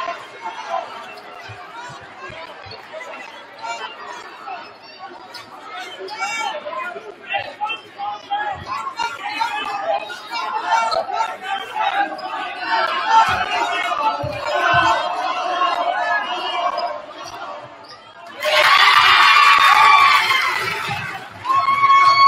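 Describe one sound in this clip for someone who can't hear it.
A crowd chatters and shouts in a large echoing gym.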